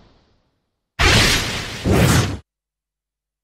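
A loud magical burst flares up twice.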